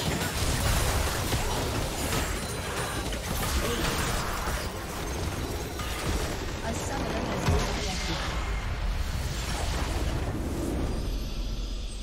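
Game spell effects crackle and boom in a fight.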